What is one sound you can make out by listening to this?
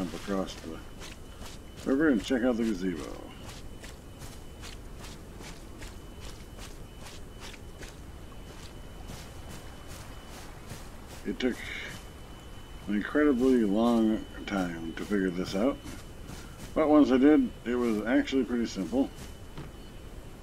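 Footsteps patter quickly and evenly on grass.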